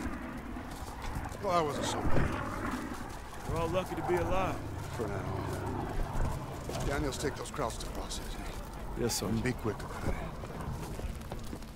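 A fire crackles on a burning wreck.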